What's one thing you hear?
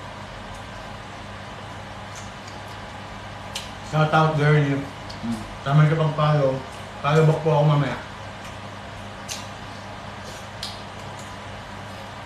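A young man slurps soup.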